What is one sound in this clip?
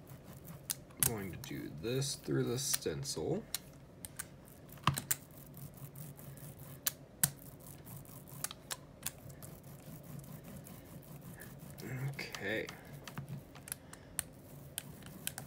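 A foam roller rolls and clicks over a stencil.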